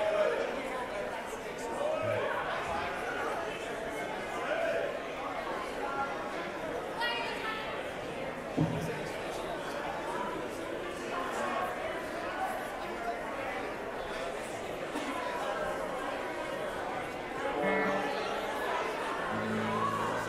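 A live band plays loudly in a large echoing hall.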